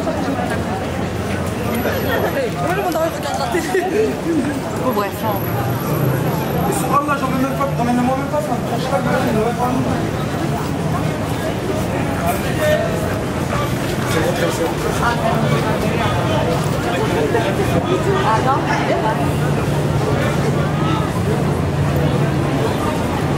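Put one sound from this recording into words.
Footsteps of many walkers tap on pavement.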